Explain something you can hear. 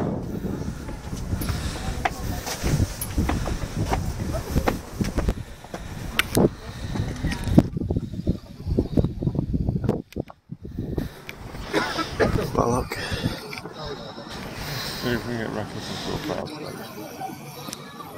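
Wind gusts and buffets against the microphone outdoors.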